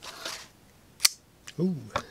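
A folding knife blade snaps open with a sharp click.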